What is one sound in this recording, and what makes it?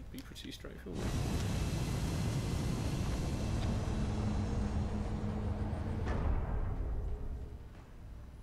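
An aircraft engine roars loudly as the craft takes off, then fades away.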